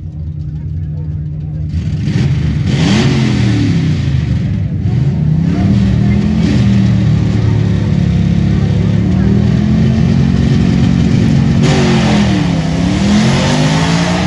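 Loud racing car engines roar and rev up and down outdoors.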